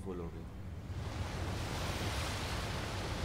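A strong wind roars and rushes.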